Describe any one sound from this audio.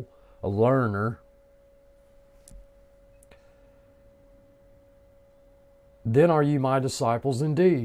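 An older man speaks calmly and closely into a microphone, with pauses.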